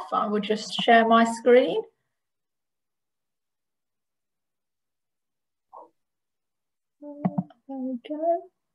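A woman speaks calmly over an online call, with pauses.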